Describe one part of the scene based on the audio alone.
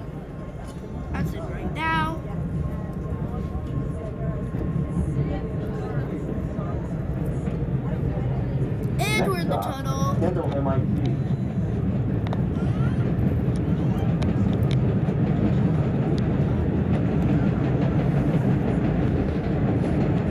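A subway train rumbles along the tracks, growing louder as it speeds into a tunnel.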